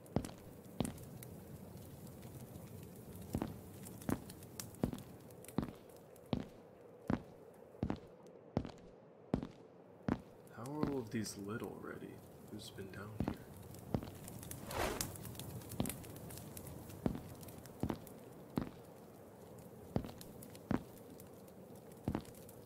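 Footsteps thud steadily on hard stone.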